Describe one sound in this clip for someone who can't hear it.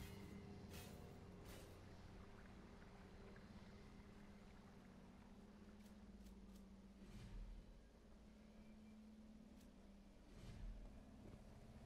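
Short menu clicks and chimes sound now and then.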